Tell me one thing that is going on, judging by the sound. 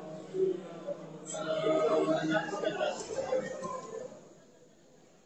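A man murmurs a prayer nearby.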